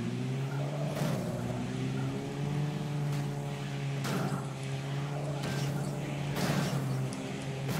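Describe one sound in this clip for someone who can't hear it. Heavy thuds sound as a car strikes bodies.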